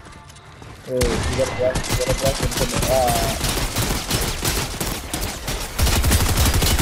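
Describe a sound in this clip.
Rapid gunshots rattle.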